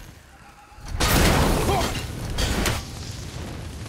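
A clay pot bursts with a fiery blast.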